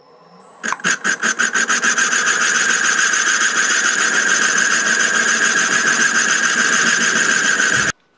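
A cutting tool scrapes against the turning workpiece.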